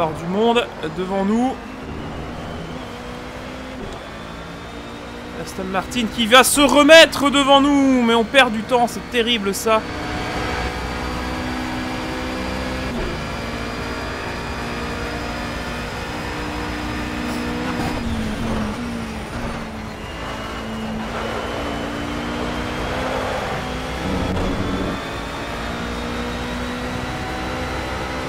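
A racing car engine roars steadily, its pitch rising and dropping as it shifts through gears.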